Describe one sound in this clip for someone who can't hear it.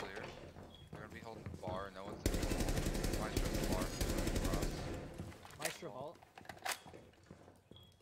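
Rapid gunfire rings out in bursts.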